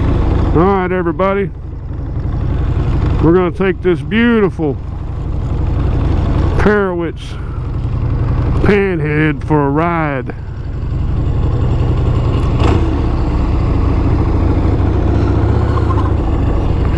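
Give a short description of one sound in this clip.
A motorcycle engine idles with a deep, throbbing rumble.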